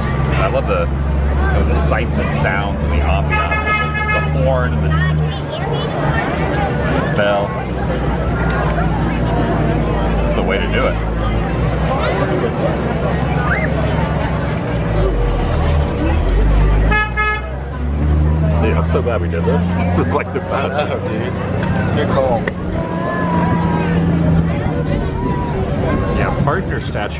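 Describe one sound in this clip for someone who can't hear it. A large crowd chatters all around outdoors.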